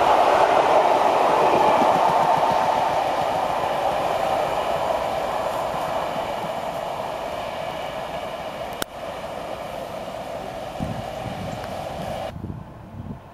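A passing train rumbles and clatters along the rails, fading into the distance.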